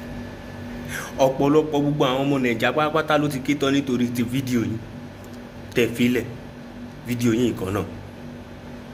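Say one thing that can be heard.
A young man speaks expressively close to a phone microphone.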